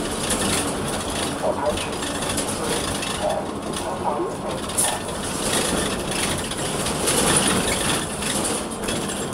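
A bus engine hums and rattles steadily while driving.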